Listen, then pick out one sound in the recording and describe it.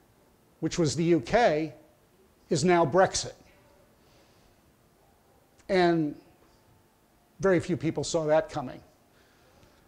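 An elderly man speaks with animation into a clip-on microphone, in short bursts.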